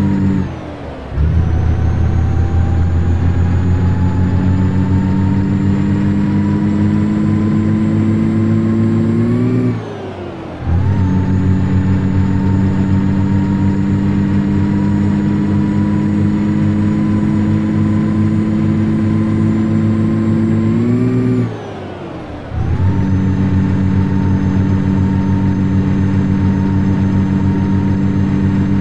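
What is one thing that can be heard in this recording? A truck engine hums steadily and climbs slowly in pitch.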